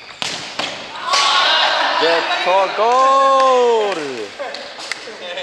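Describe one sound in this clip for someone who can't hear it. Young men shout and call out across the hall.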